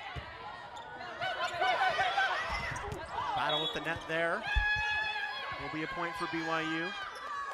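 A crowd cheers loudly in a large echoing hall.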